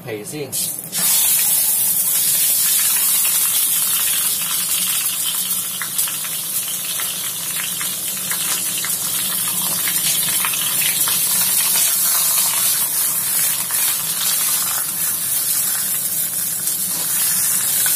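Duck sizzles in a hot stainless steel pan.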